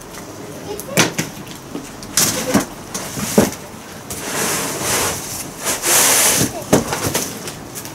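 Wooden objects knock and clatter as a woman moves them.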